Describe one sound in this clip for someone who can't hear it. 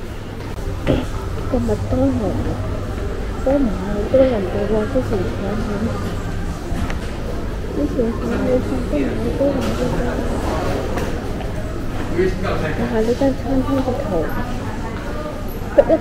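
Men and women chat in the background of a large echoing indoor space.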